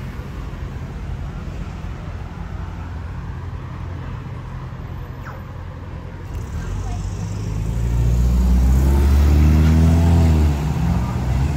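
Traffic rumbles steadily on a street outdoors.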